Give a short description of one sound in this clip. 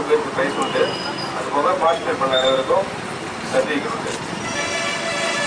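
A man speaks firmly into a microphone over a loudspeaker.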